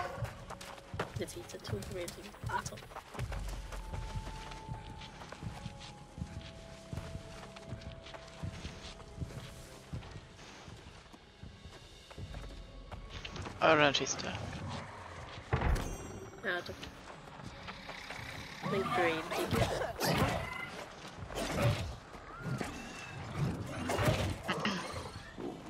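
Footsteps rustle through tall grass.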